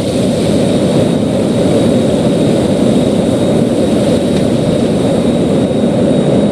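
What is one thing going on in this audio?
A jet engine roars steadily and loudly close by.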